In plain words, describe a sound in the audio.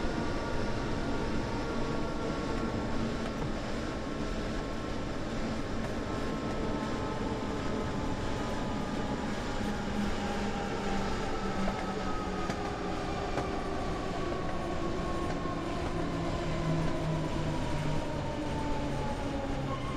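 An electric train's motor hums and slowly falls in pitch as the train slows down.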